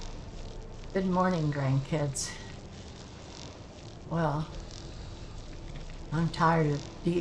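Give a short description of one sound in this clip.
An elderly woman speaks calmly into a microphone, in short bursts.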